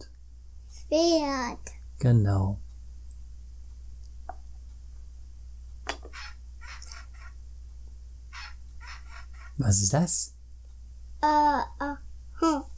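A young boy speaks in a small high voice close by.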